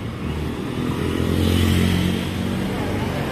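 Motorcycles ride past on the street.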